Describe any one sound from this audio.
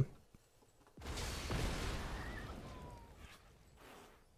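A magical whoosh sweeps and slowly fades.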